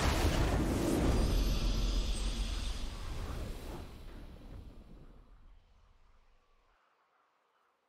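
A triumphant game fanfare plays loudly and fades away.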